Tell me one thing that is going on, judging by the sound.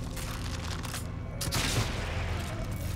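A crossbow fires a bolt with a sharp snap.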